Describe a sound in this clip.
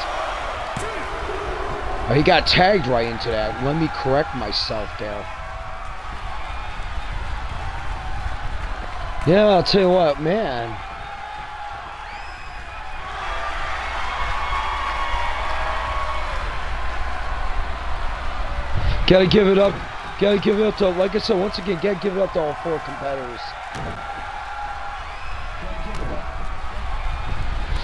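A body slams onto a wrestling mat with a thud.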